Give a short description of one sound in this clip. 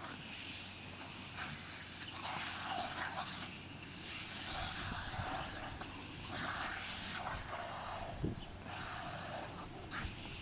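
A dog snaps and bites at a spray of water.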